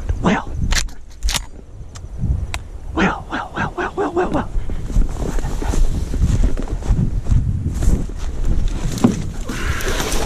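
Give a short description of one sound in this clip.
Dry reeds and brush rustle and crackle as someone pushes through them.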